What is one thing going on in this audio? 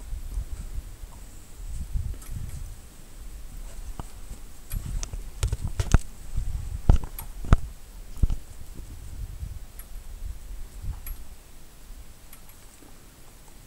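A dog's paws crunch and thump through deep snow.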